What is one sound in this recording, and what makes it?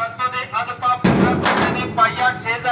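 A sheet-metal door rattles as a hand pushes it open.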